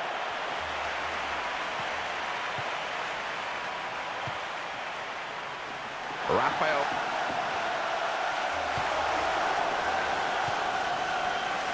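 A large crowd murmurs and cheers steadily across an open stadium.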